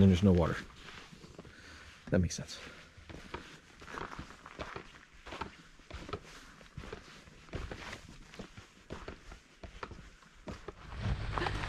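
Footsteps crunch on a dry forest trail.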